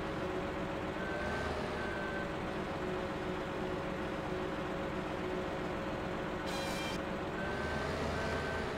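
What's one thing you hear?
A heavy engine hums steadily.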